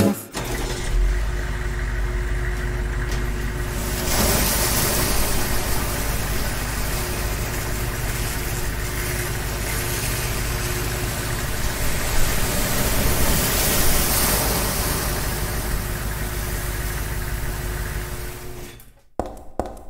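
A large machine rumbles and whirs steadily.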